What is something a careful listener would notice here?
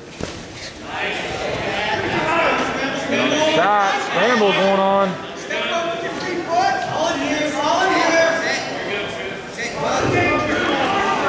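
Men and women in a crowd shout encouragement loudly in an echoing hall.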